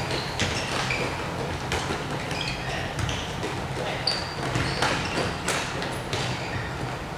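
A ball thumps on the floor and is kicked.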